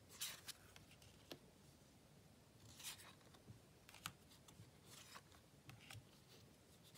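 Fingers tap softly on cards.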